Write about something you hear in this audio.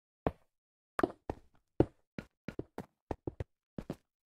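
Small items pop in quick succession as they are picked up.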